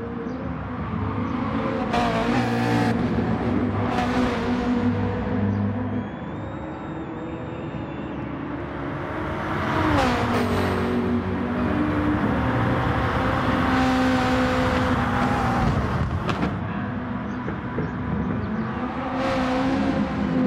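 Racing car engines roar and change pitch as they shift through gears.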